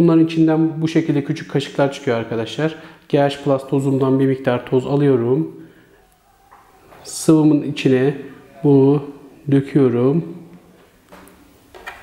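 A young man speaks calmly and clearly.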